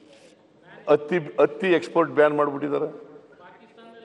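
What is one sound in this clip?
A man speaks through a microphone in a large hall.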